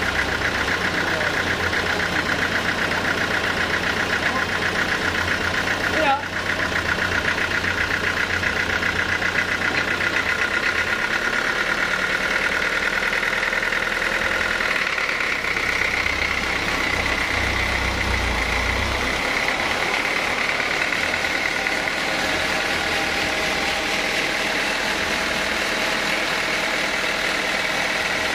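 A band saw whines steadily and loudly.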